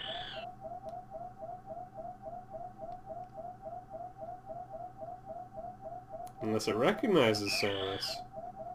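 A creature makes a steady, fast repeating warbling chirp.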